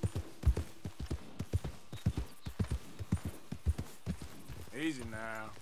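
A horse's hooves thud steadily on soft ground.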